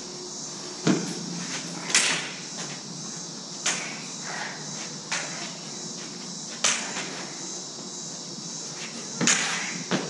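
Toy light swords clash with sharp cracks that echo in a large bare hall.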